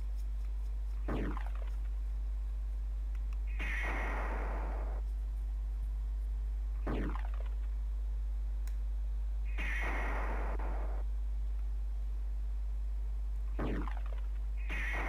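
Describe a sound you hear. A falling whoosh sounds in a game, several times.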